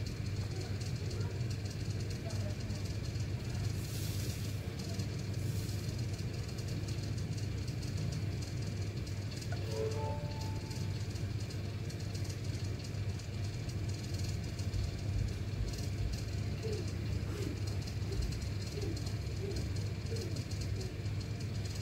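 Fingertips tap softly on a touchscreen.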